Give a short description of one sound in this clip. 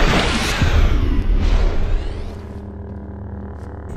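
A blade swooshes through the air.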